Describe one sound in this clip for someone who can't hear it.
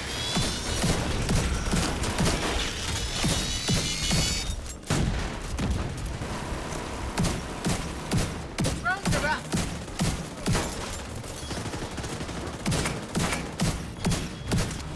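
Gunshots crack repeatedly in a fast, uneven rhythm.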